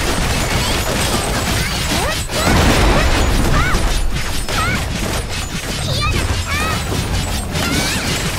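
Blades slash and energy blasts crackle rapidly in a fast fight.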